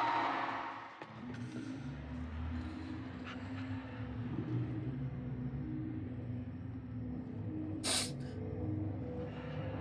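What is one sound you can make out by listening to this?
Music with a steady beat plays.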